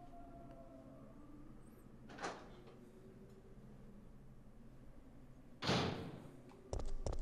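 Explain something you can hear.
A heavy door creaks slowly open.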